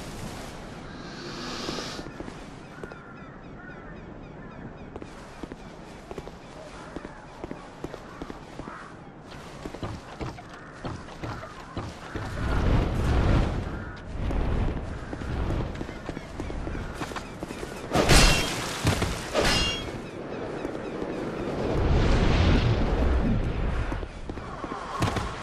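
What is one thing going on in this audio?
Armoured footsteps thud on stone.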